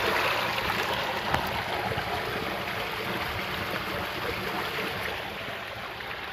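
Water gushes from a pipe and splashes into a tank.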